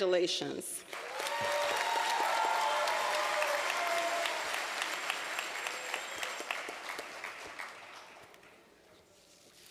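An audience applauds in a large hall and the applause slowly fades.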